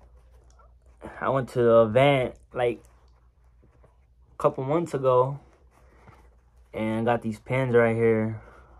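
A young man talks calmly and close by, in short bursts.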